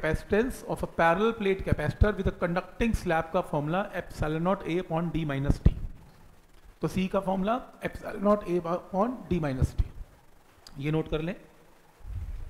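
A man explains calmly, close to a microphone.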